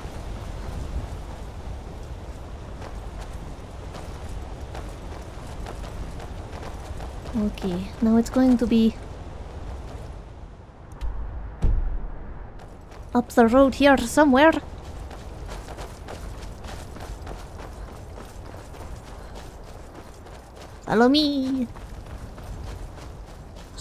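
Footsteps crunch steadily over stony ground.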